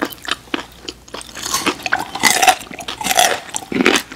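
A man bites into a raw carrot stick with a loud crunch close to a microphone.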